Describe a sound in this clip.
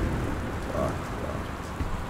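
A door handle rattles against a locked door.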